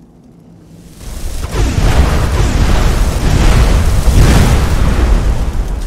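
A fiery blast roars loudly and rumbles on.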